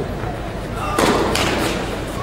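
A tennis racket hits a ball with a sharp pop.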